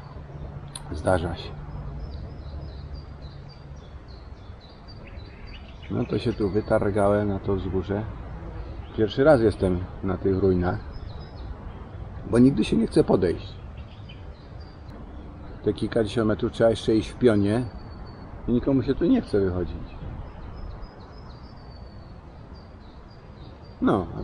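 A man speaks calmly, close by, outdoors.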